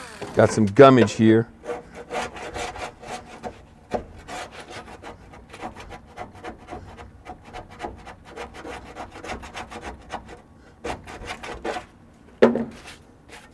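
A metal tool scrapes and scratches against rusty metal.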